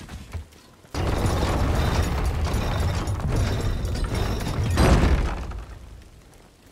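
A chain rattles as a cage is hoisted.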